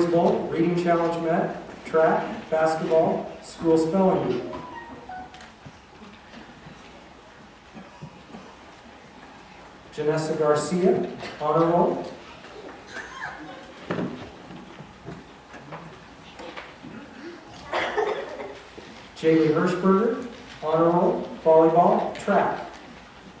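A man speaks into a microphone over loudspeakers in a large echoing hall, reading out in short bursts.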